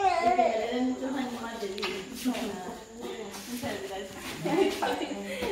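Several women and girls chatter and laugh in the background.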